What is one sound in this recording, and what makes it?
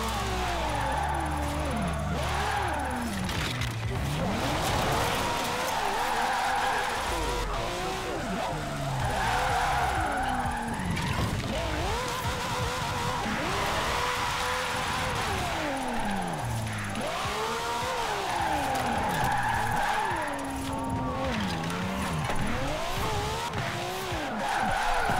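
Tyres screech while a car drifts through corners.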